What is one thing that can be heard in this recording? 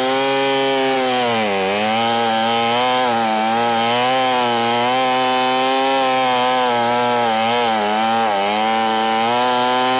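A chainsaw engine roars loudly close by, its pitch dipping as it bites into wood.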